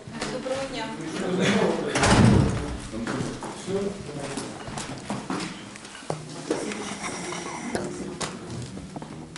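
A middle-aged woman talks with animation close by.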